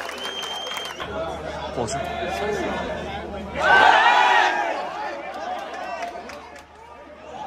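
A crowd of fans shouts and chants close by, outdoors.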